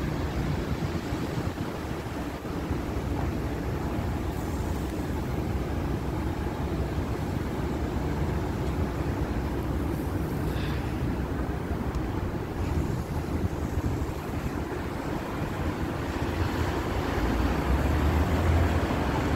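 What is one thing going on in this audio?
City traffic hums steadily nearby, outdoors in the open.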